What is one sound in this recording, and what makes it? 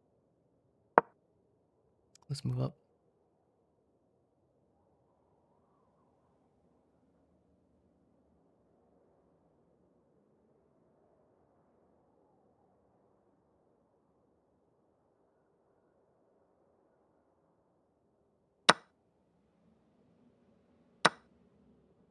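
A chess piece clicks sharply onto a board.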